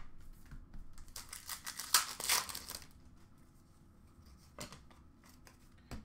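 Cardboard card packs rustle and tap as hands handle them.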